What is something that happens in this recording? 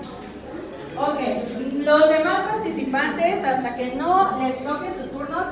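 A woman speaks with animation through a microphone and loudspeaker.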